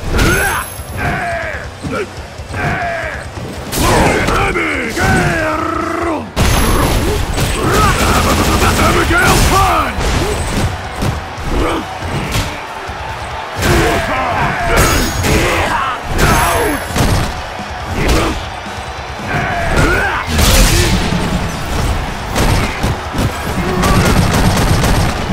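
Punches and slams thud and crack in quick bursts.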